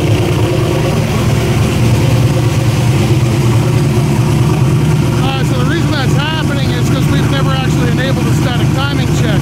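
A car engine runs with a loud, steady low rumble.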